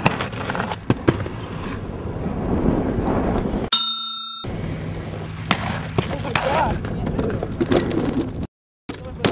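Skateboard wheels clack and knock on pavement.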